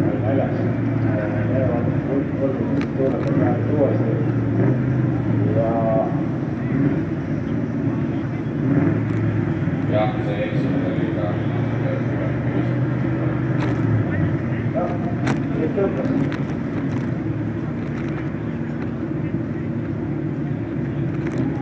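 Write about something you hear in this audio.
A car engine roars and revs hard as it drifts.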